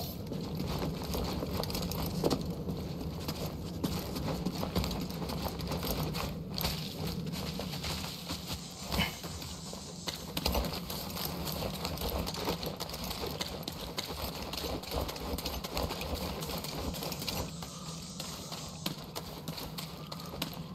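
Footsteps run quickly over stone and grass.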